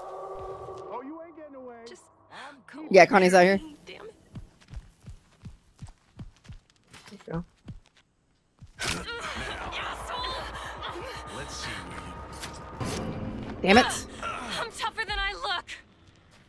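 A man speaks in a gruff, taunting voice.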